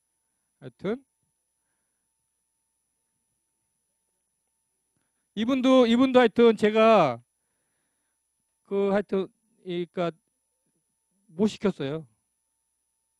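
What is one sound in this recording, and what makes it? A middle-aged man speaks into a microphone in short bursts, with pauses between.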